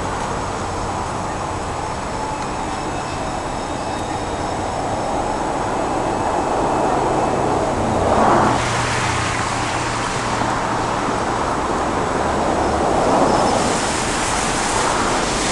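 Traffic rushes past on a road nearby, swelling and fading as cars pass.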